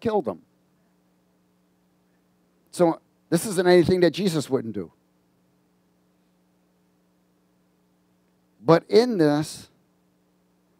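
A middle-aged man speaks with animation through a headset microphone, in short bursts with pauses.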